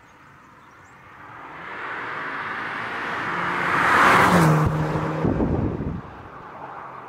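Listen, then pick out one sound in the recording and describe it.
A car engine revs up loudly as the car approaches and speeds past.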